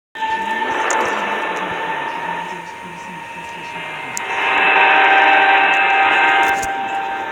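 Eerie game music drones steadily and grows louder partway through.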